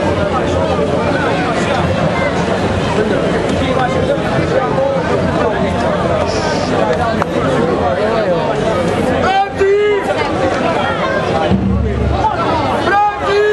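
A large crowd of people chatters and murmurs close by, outdoors.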